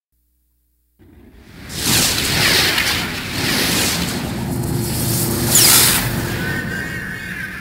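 A loud whooshing rush swells and sweeps past.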